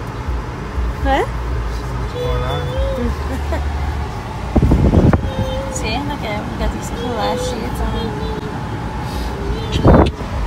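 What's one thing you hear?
A car engine hums steadily inside a car.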